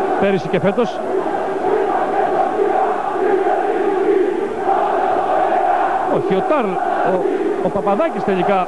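A large crowd roars and chants in an echoing arena.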